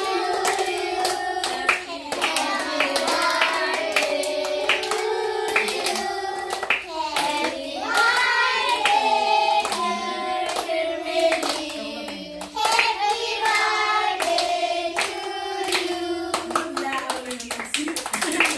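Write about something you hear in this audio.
A group of children sing together loudly and close by.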